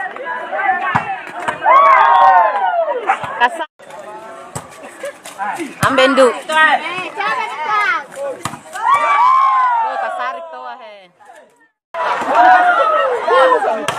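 A volleyball is hit with dull thumps.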